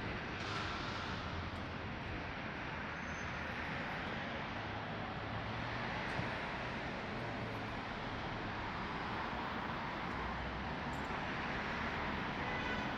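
City traffic hums steadily in the distance outdoors.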